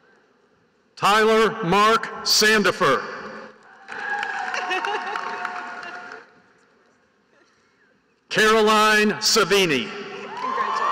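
A man reads out names through a loudspeaker in a large echoing hall.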